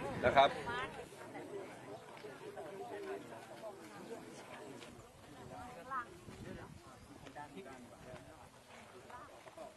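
Several men talk quietly at a distance outdoors.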